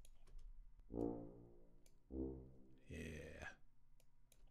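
A few synthesized piano notes play.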